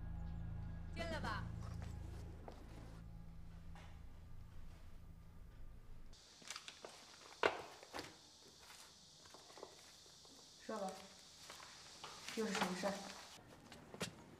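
A woman says a few words calmly, close by.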